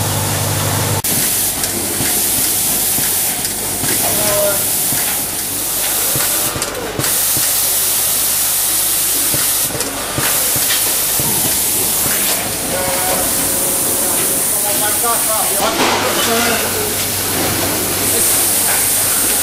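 Industrial machinery whirs and clicks steadily.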